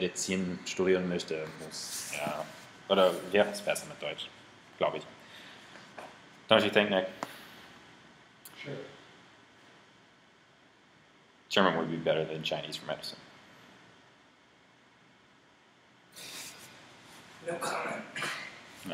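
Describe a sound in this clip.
A young man talks close to the microphone in bursts, with pauses.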